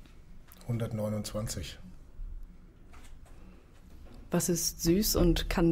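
A young woman speaks into a close microphone, with a laugh in her voice.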